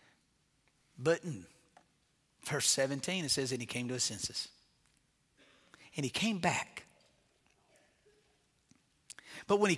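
A middle-aged man speaks earnestly through a microphone, with pauses between phrases.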